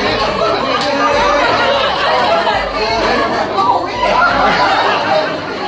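Several people chatter and talk over each other in a lively crowd.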